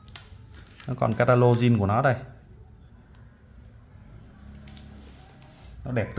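Paper rustles softly as a booklet is lifted.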